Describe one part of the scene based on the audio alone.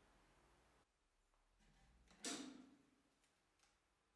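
A wooden cabinet door clicks open.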